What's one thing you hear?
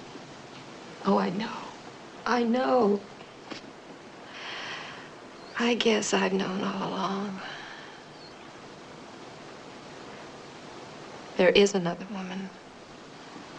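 A young woman speaks quietly and sadly, close by.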